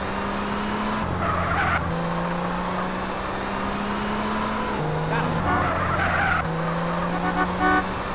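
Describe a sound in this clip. A sports car engine drones at speed.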